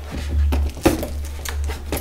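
Scissors snip through a ribbon.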